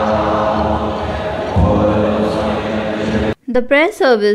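A group of men chant together in a low, steady drone in a large echoing hall.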